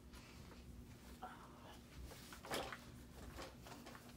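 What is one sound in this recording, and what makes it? A boy shuffles close by and sits down.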